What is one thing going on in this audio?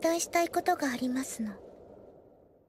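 A young girl speaks quietly and seriously.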